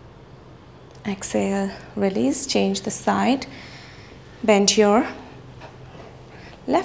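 A young woman speaks calmly, giving instructions.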